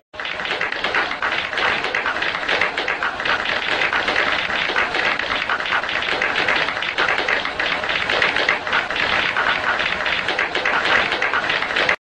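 Women in a crowd scream excitedly.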